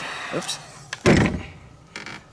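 A heat gun clunks down onto a table.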